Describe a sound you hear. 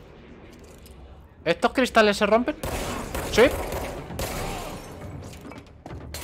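Glass shatters.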